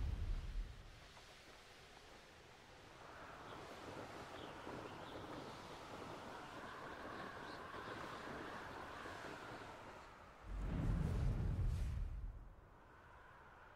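Wind rushes past during a fast flight.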